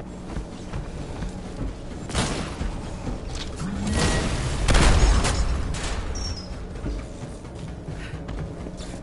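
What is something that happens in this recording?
Heavy footsteps stomp on a metal floor.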